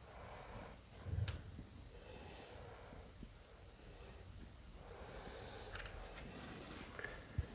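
Fabric rustles as curtains are handled.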